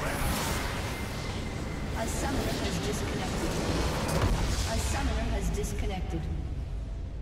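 A large structure explodes with a deep rumbling blast.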